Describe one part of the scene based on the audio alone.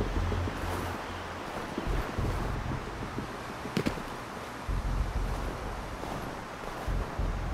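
Wind gusts and howls outdoors in a snowstorm.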